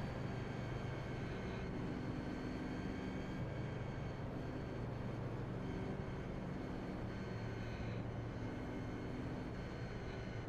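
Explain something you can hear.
A race car engine hums steadily under a low throttle.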